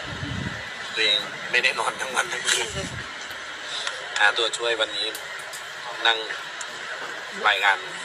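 A young man speaks through a headset microphone.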